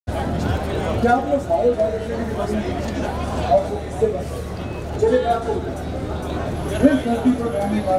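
A crowd of young men and women chatters nearby outdoors.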